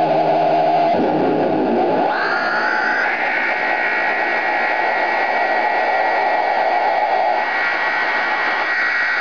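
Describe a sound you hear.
Electronic guitar effects swell and sweep in pitch, then hold a droning, noisy tone.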